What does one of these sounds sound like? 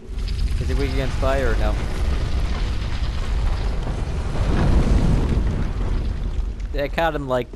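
A heavy stone door grinds slowly open with a deep rumble.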